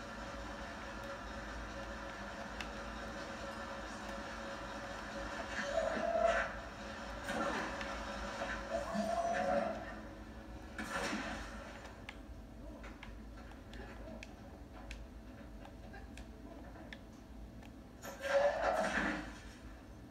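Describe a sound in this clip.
Video game sounds play from a television, with occasional loud bursts.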